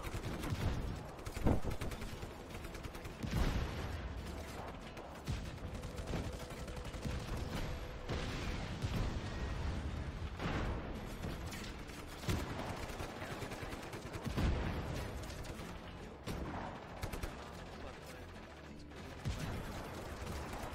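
A tank cannon fires with heavy booming blasts.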